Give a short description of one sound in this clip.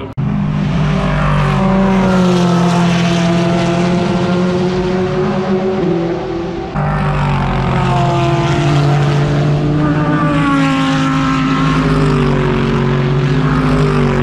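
Racing car engines roar loudly as the cars speed past and shift gears.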